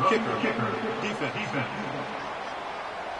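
A man announces calmly over a stadium loudspeaker.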